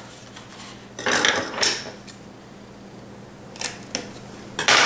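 Scissors snip through stiff paper.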